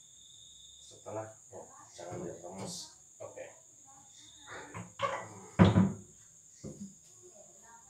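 A metal radiator knocks and rattles.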